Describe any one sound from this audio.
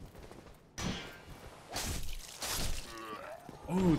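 Swords clang and strike in a fight.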